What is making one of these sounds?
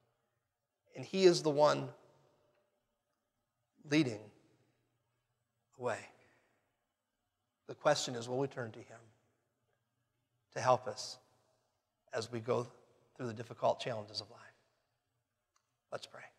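A man speaks with animation in short bursts through a microphone, with pauses between phrases.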